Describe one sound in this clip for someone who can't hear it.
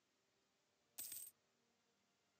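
A short chime sounds as a game message pops up.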